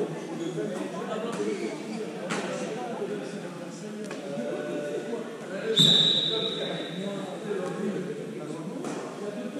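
Players shout to each other across a large echoing hall.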